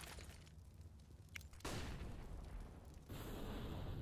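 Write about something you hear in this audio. A lit firebomb is tossed and bursts into roaring flames.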